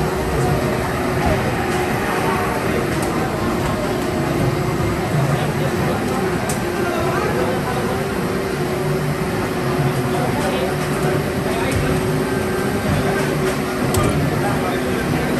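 Racing game engines roar and whine loudly from arcade speakers.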